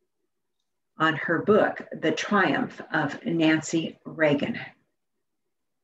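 An elderly woman speaks calmly into a microphone, heard as if over an online call.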